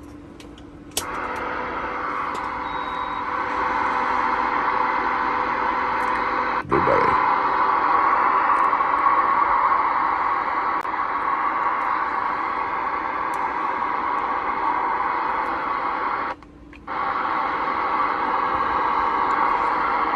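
Loud static hisses steadily from a radio speaker, cutting out briefly once.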